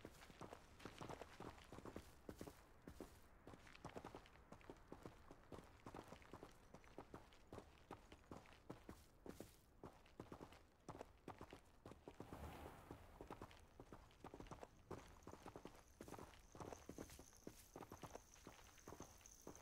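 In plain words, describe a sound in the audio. Footsteps crunch on grass and dirt at a brisk walk.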